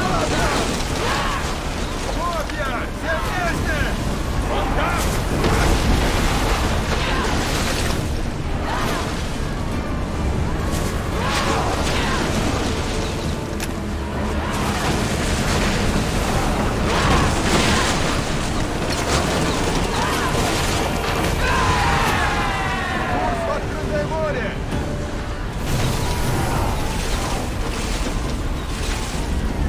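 Fire bursts with a loud roar.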